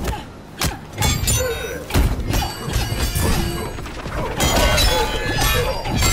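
A staff whooshes through the air in quick swings.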